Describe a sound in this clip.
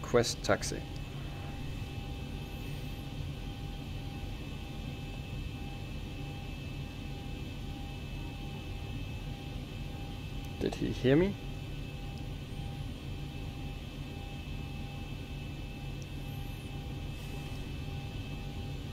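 Jet engines hum steadily and low.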